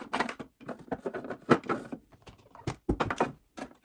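An acrylic drawer slides open with a light scrape.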